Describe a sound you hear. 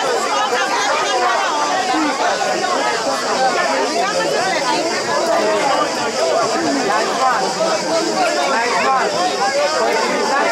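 Young men shout to one another across an open field.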